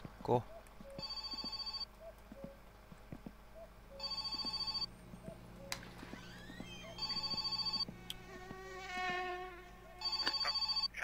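A telephone rings in short repeated bursts.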